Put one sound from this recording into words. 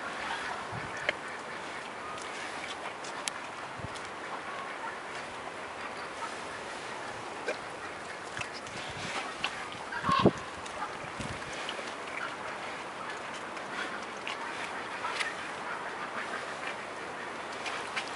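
A bear chews and smacks its lips close by.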